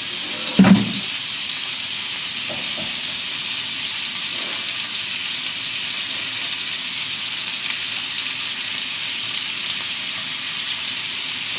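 A spatula scrapes and knocks against a bowl.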